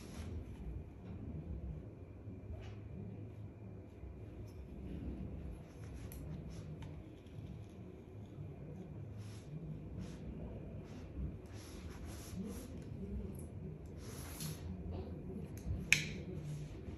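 A flat iron clicks shut on hair.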